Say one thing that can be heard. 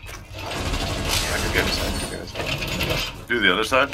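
A metal barrier clanks and rattles as it is pushed into place.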